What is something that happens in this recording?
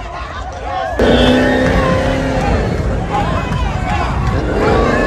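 A crowd cheers and yells loudly.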